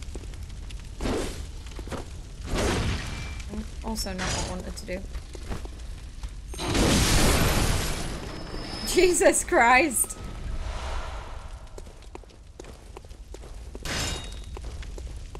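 Weapon blows slash and thud in a game.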